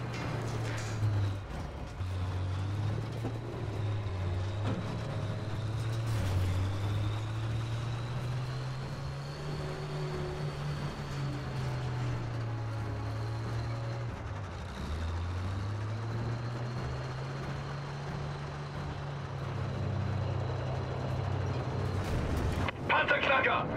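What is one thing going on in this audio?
A tank engine rumbles steadily as the tank rolls along.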